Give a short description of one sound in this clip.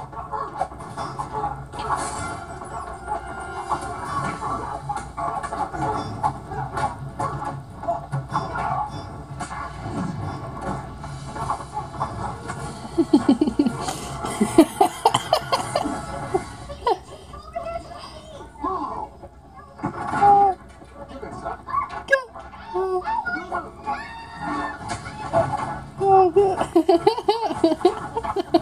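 Punches and thuds of a fist fight come through a television speaker.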